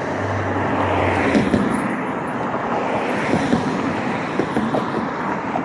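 Cars drive past on a nearby road.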